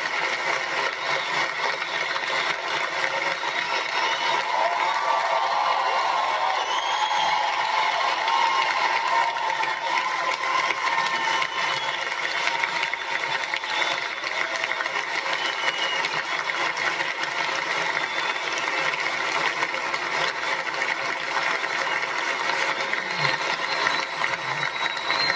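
A large crowd applauds loudly in a big hall.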